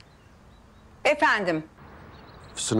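A woman speaks into a phone.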